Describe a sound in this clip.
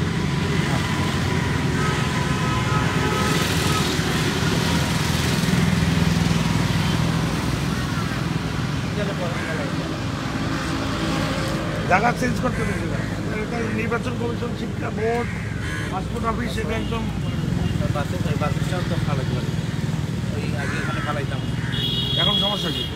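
Traffic hums steadily outdoors.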